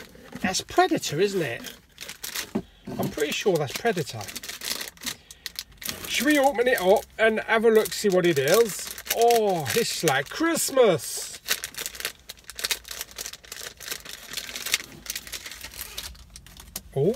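Plastic packaging crinkles and rustles in a man's hands.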